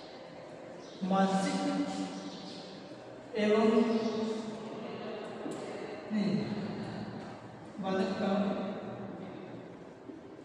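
A man speaks in bursts in a room with some echo.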